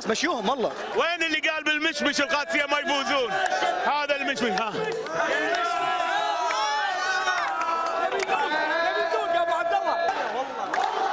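A middle-aged man shouts and sings with animation into a microphone.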